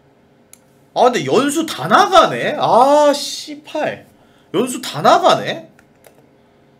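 A young man talks loudly and with animation into a close microphone.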